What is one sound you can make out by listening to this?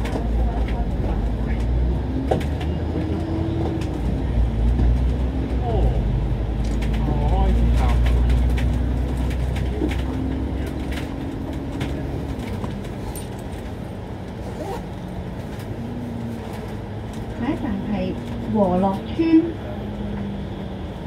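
A bus engine hums and drones steadily as the bus drives along.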